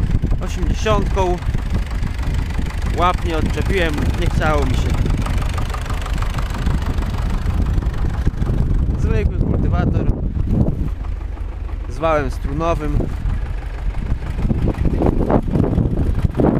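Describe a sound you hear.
A tractor engine rumbles steadily close by.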